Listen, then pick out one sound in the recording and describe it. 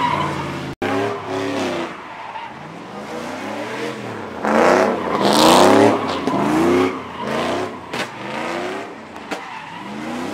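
A truck engine revs hard, rising and falling.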